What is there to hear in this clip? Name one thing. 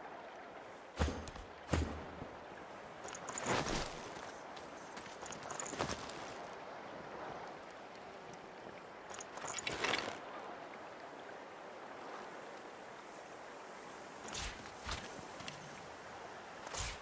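Soft clicks and thuds of game items being picked up and equipped.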